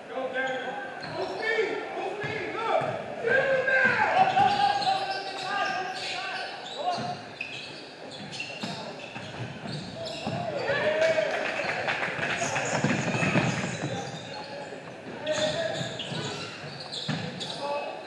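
Young players shout and call out to each other in an echoing gym.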